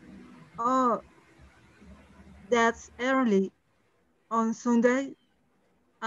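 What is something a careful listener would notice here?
A woman speaks slowly and clearly over an online call.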